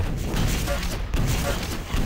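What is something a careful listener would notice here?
A rocket explodes with a dull boom.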